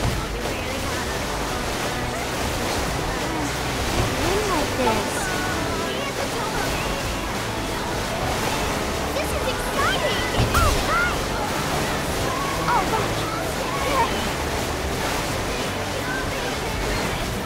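A jet ski engine roars steadily.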